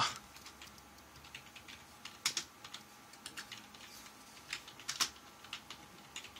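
Keys click on a computer keyboard as someone types.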